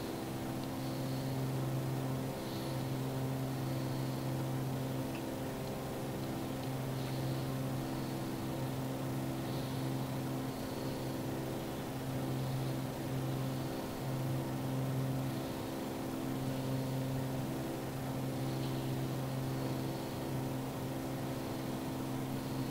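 A propeller engine drones steadily inside a small aircraft cabin.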